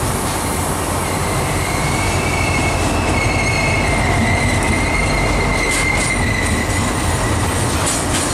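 Wheels squeal against the rails.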